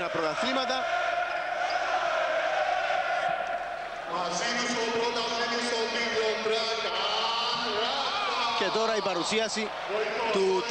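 A large crowd chants and sings loudly in an echoing arena.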